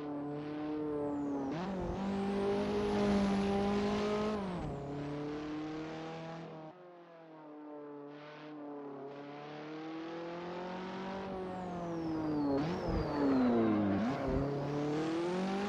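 A racing car engine revs hard, rising and falling with quick gear shifts.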